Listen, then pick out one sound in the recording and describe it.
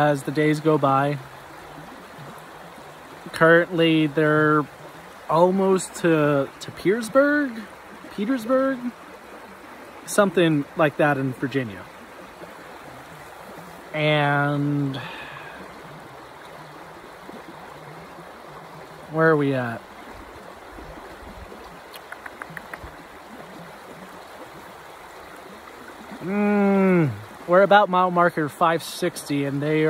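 A stream rushes softly in the background.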